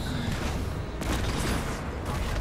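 Metal clangs as a blow is blocked.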